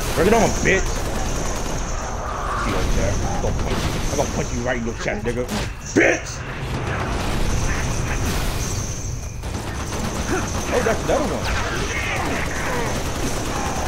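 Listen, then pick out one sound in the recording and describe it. Energy blasts zap and sizzle.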